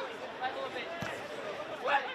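A football is kicked hard with a thud.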